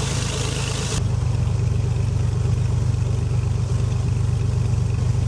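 A propeller engine drones steadily, heard from inside the cockpit.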